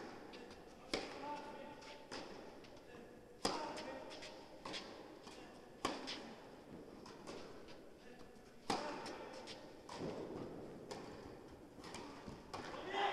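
A tennis racket strikes a ball with sharp pops in a large echoing hall.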